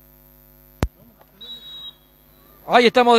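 Young men shout across an open field outdoors.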